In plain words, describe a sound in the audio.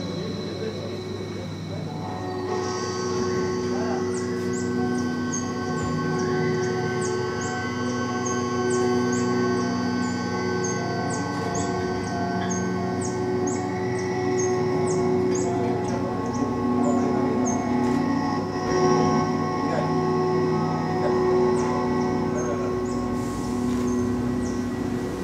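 Layered electronic drones hum steadily through loudspeakers.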